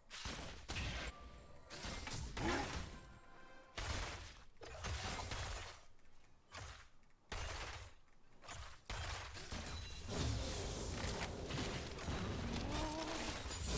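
Fighting sound effects clash and burst from a video game.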